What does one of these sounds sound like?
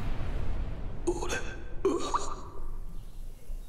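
A young man speaks weakly and faintly.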